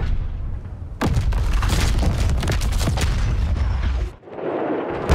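Explosions boom and rumble loudly.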